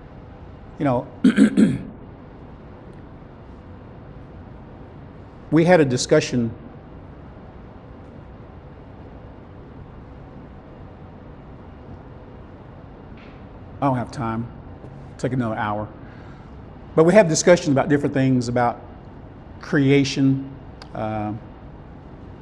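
A middle-aged man speaks with animation into a clip-on microphone, in short bursts with pauses.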